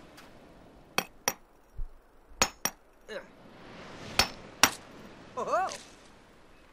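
Hands dig and scrape in sand with sharp knocks.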